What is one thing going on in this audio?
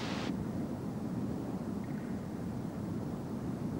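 A waterfall roars steadily.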